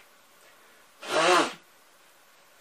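An elderly man blows his nose into a tissue.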